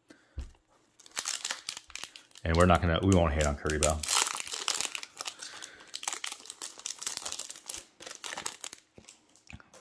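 A foil wrapper crinkles and rips open.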